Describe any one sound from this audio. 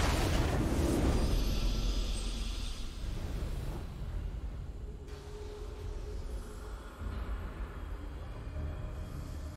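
A triumphant fanfare plays and slowly fades.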